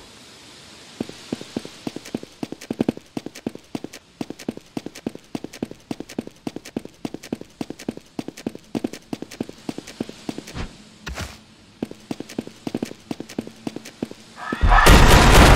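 Quick footsteps patter.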